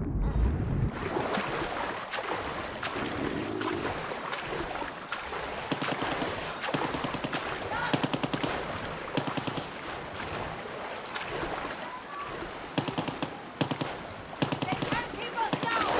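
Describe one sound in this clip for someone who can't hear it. Water splashes and sloshes with swimming strokes at the surface.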